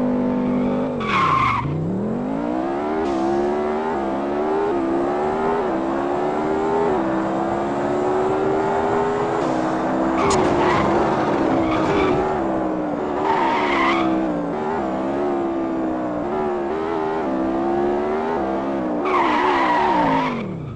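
Tyres screech in short bursts as a car skids.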